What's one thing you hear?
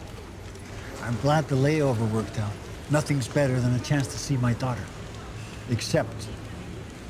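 An older man speaks calmly in a low voice, close by.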